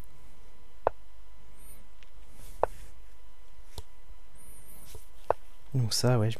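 Short clicks sound as chess pieces are moved.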